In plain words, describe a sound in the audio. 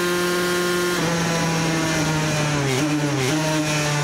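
A motorcycle engine drops in pitch as the rider shifts down.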